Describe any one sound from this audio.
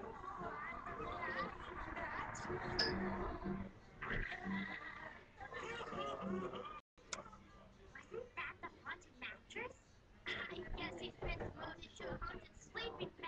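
A cartoon soundtrack plays from a television.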